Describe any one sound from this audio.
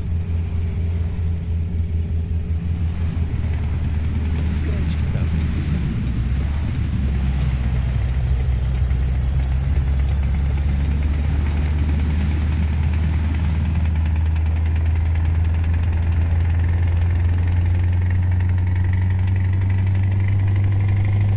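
A truck's diesel engine drones steadily, rising in pitch as it speeds up.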